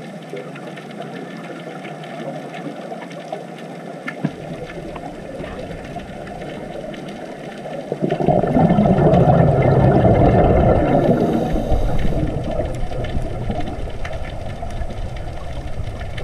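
Bubbles from a diver's breathing gurgle and rumble underwater.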